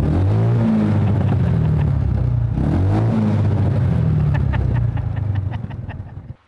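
A loud car engine idles with a deep rumble and revs up twice.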